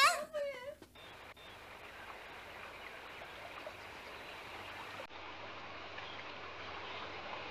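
Water splashes steadily down a small waterfall.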